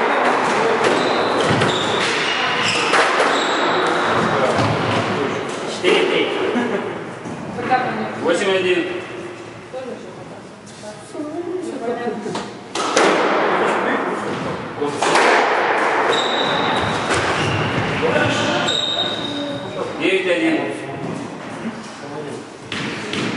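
A squash ball smacks sharply against the walls and rackets in an echoing court.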